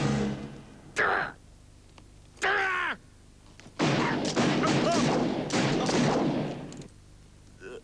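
Gunshots ring out one after another, each followed by a ringing echo.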